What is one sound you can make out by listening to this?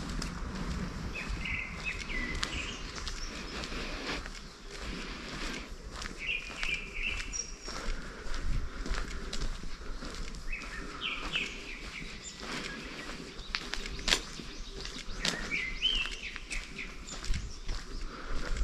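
Footsteps tap steadily on a paved path outdoors.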